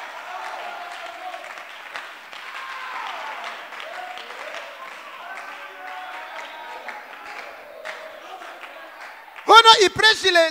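A group of people pray aloud together in a low murmur.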